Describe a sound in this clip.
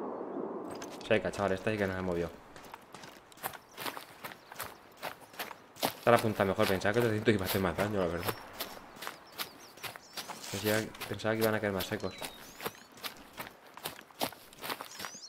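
Footsteps crunch through snow and brush.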